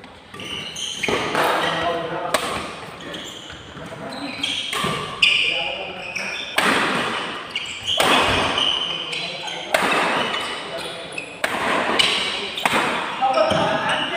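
Badminton rackets strike a shuttlecock back and forth in an echoing hall.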